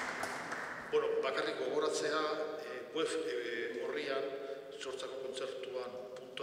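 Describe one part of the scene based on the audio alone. An organ plays sustained notes that ring out in a large echoing hall.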